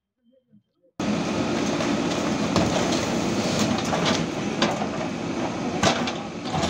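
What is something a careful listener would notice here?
An excavator engine roars and rattles as it knocks down a wall.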